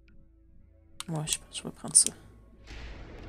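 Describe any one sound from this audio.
A menu closes with a sweeping whoosh.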